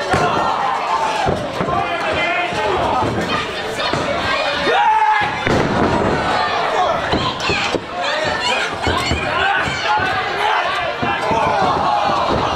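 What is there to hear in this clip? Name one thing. A ringside crowd shouts and cheers in an echoing hall.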